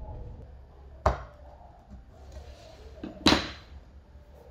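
Small plastic pieces tap down onto a wooden board.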